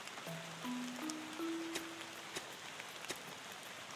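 Blocks snap into place with soft clicks.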